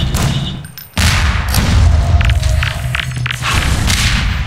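A laser gun fires with a deep, rumbling hum.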